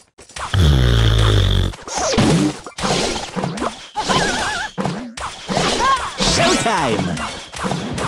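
Cartoonish game sound effects clash and pop.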